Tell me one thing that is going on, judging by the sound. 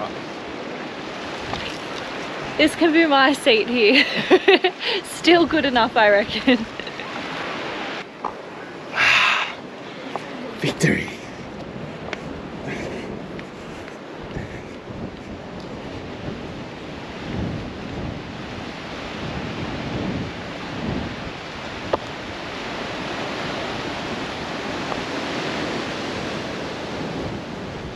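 Waves wash gently against rocks outdoors.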